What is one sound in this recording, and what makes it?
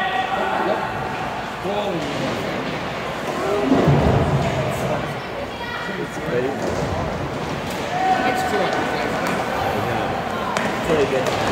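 Hockey sticks clack against a ball and the floor.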